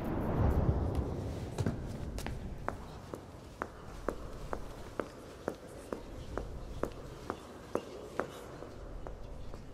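Heels click steadily on a stone floor in a large echoing hall.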